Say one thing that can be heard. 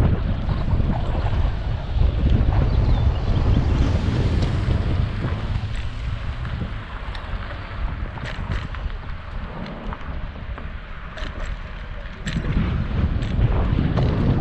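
Tyres roll over concrete and thump over cracks in the pavement.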